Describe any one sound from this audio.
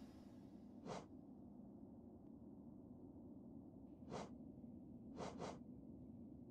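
Soft menu clicks tick a few times in near silence.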